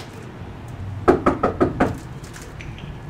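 A young man knocks on a door with his knuckles.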